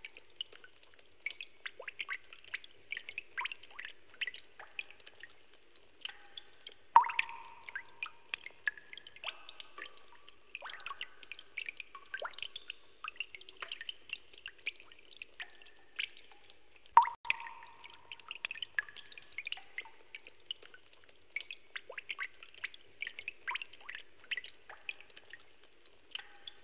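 Rapid electronic blips tick in quick bursts.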